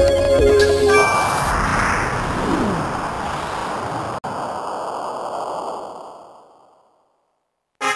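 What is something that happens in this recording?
A whooshing game sound effect swells and fades away.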